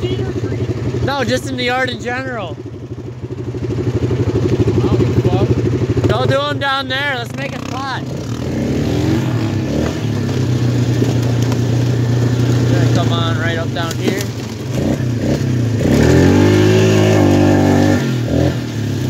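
A quad bike engine runs close by, revving up and down as it drives.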